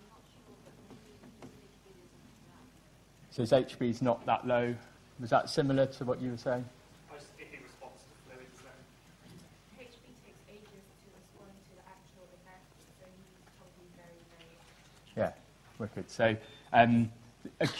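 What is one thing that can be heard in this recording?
A young man lectures into a microphone, speaking clearly and steadily.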